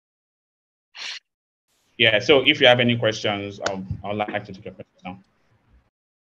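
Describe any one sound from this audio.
A second man speaks calmly over an online call.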